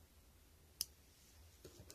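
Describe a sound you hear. Scissors snip a thread once.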